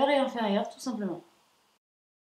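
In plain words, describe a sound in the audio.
A young woman speaks close to a microphone, calmly and clearly.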